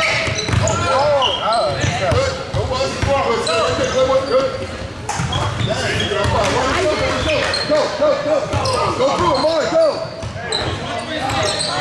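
Players and onlookers shout and chatter in a large echoing hall.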